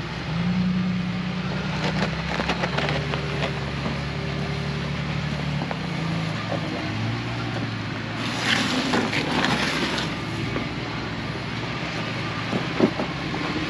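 Tyres crunch and grind on snowy rocks.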